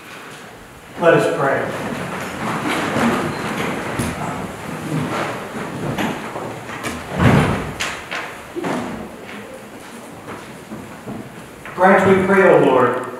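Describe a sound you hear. A middle-aged man speaks and chants through a microphone in a reverberant hall.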